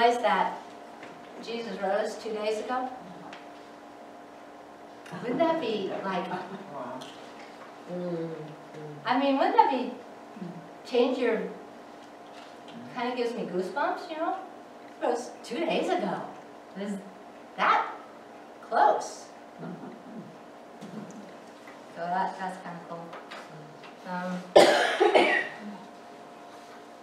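A woman speaks calmly and clearly in a room with a slight echo.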